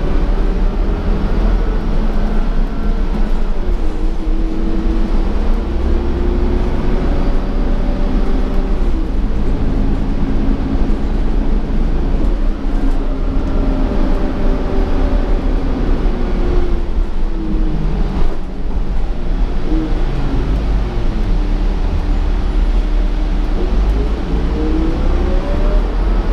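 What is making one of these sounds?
A bus engine drones and whines steadily, rising and falling in pitch.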